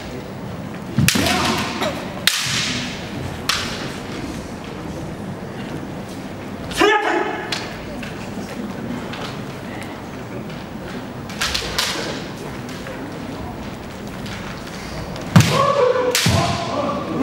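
Bare feet stamp on a wooden floor.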